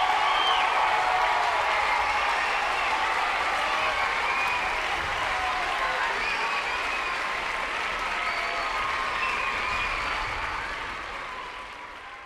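A large audience applauds and cheers in an echoing hall, fading toward the end.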